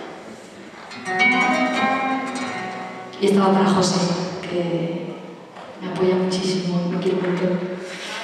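An ensemble of instruments plays music in an echoing hall.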